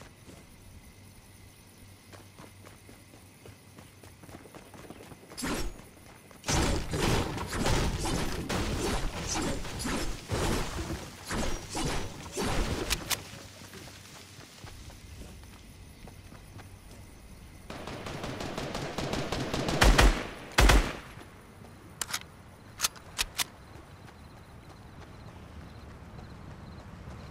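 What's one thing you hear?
Footsteps run over grass and pavement.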